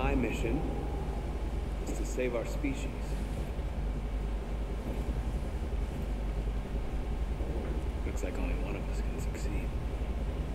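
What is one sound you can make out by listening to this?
A man speaks calmly and tensely.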